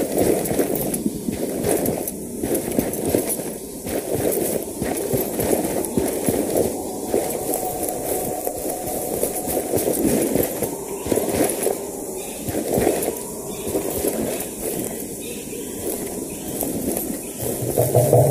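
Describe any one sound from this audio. Footsteps rustle through tall grass and undergrowth.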